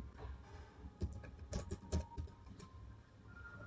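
Keys click on a computer keyboard in quick bursts.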